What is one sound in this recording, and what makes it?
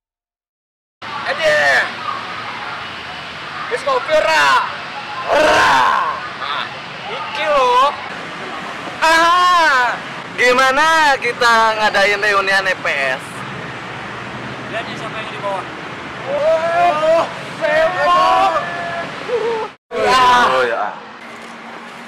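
Young men talk and exclaim with animation, close by, outdoors.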